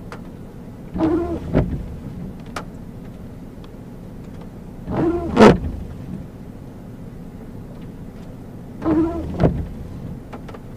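A windshield wiper sweeps across wet glass.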